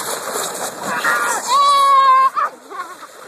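A child shouts loudly nearby.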